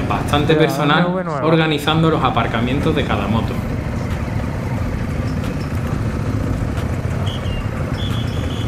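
A motorcycle engine rumbles nearby as it rides slowly.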